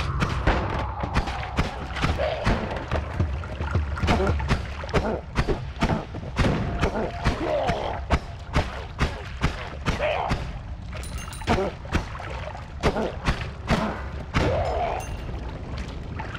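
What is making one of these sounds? Rapid game shots and explosions crackle and pop.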